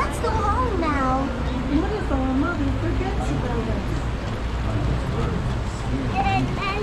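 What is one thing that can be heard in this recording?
Water flows gently along a shallow stream outdoors.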